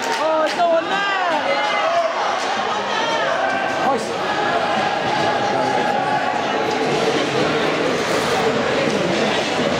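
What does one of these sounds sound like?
Ice skates scrape and hiss across ice.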